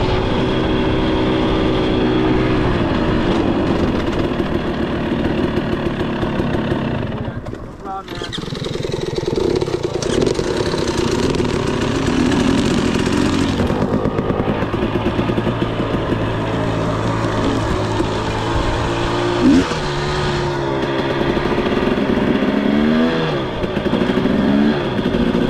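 A dirt bike engine runs up close, rising and falling in pitch as it revs.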